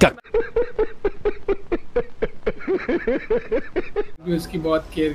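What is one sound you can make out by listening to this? A man laughs heartily in bursts.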